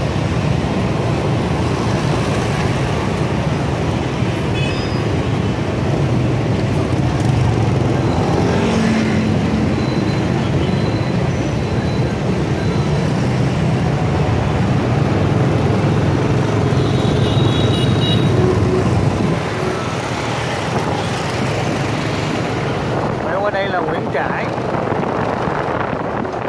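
Motorbike engines hum and buzz steadily as traffic passes close by.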